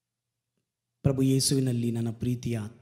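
A man sings into a close microphone.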